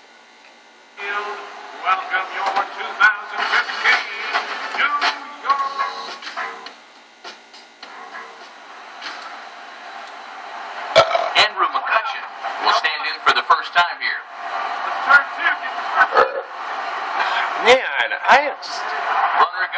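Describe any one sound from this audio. A stadium crowd murmurs and cheers through a TV loudspeaker.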